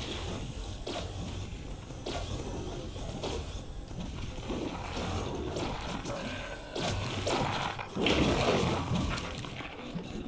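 A sword strikes creatures with repeated thuds and hits.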